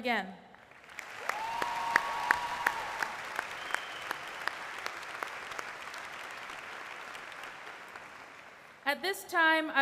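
A large crowd applauds and cheers.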